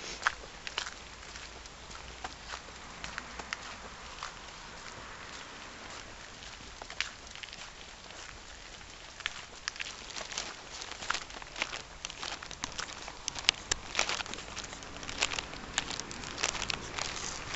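Footsteps crunch and scuff along a muddy path outdoors.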